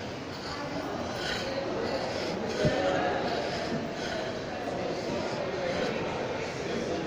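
Distant voices murmur faintly in a large echoing hall.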